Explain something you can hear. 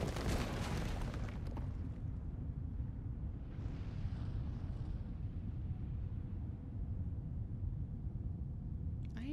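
A deep, heavy rumble drones steadily throughout.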